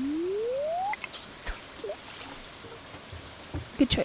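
A fishing line whips out and plops into water.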